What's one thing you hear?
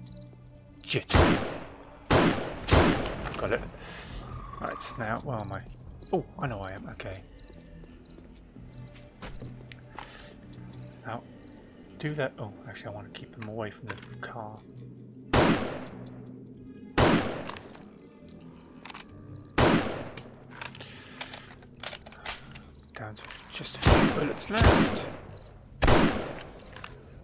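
A rifle fires loud, sharp shots that ring out.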